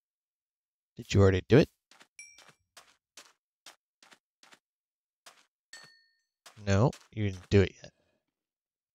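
Footsteps crunch steadily on sand.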